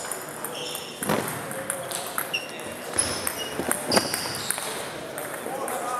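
A table tennis ball clicks against paddles and the table in a large echoing hall.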